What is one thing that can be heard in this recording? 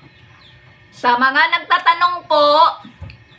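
A middle-aged woman speaks with animation close to the microphone.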